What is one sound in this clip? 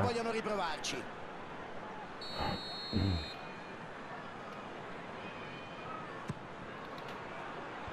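A large stadium crowd murmurs steadily in the distance.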